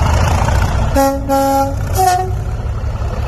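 A train horn sounds in short blasts.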